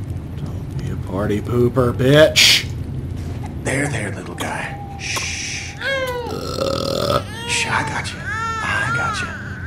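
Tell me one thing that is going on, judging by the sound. A baby cries and wails.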